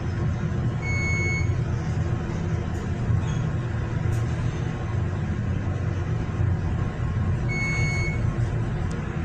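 An elevator chime dings.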